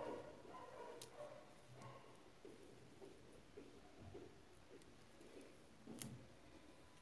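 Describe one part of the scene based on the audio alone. Small beads click together.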